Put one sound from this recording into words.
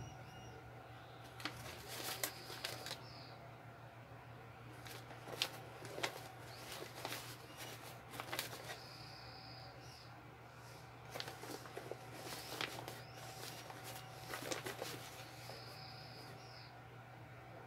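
Cloth rustles as clothes are folded and tucked away.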